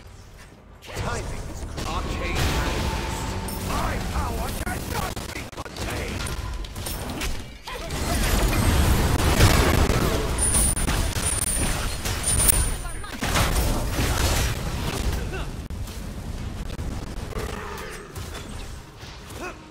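Magic blasts crackle and whoosh in a fast, busy fight.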